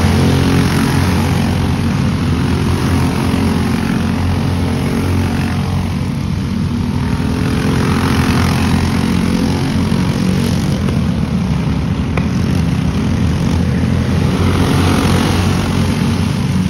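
Go-kart engines drone loudly nearby as they race by.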